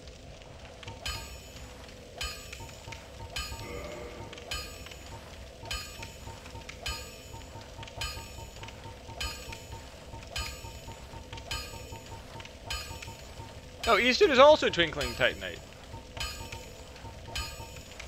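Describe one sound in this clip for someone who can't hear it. Game menu clicks tick at a steady pace.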